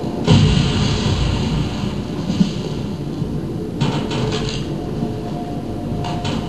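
Dark rumbling game music and sound effects play from a television.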